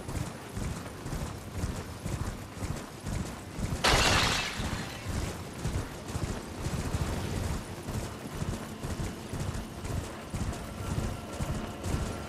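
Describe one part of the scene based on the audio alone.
Horse hooves thud rhythmically on soft ground at a gallop.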